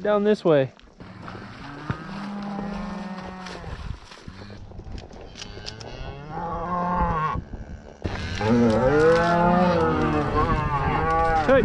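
Cows moo in long, low calls.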